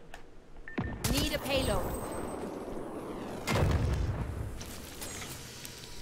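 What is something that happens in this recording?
Gunfire and a blast boom loudly from a game.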